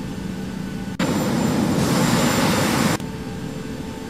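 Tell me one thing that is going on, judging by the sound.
A jet engine roars loudly, then cuts off.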